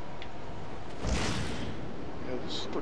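Wind rushes loudly past as a caped figure swoops into a dive.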